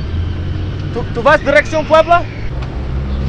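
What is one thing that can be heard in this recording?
A man calls out loudly in short bursts nearby.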